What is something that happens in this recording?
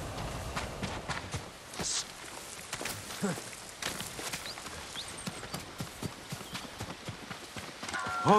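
Footsteps rustle quickly through grass and brush.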